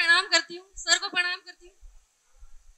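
A young woman speaks briefly into a microphone through a loudspeaker.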